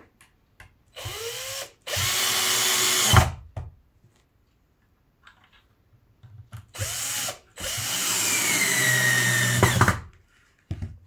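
A cordless drill whirs, driving screws into wood.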